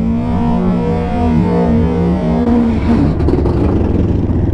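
A motorcycle engine revs up as the bike pulls away.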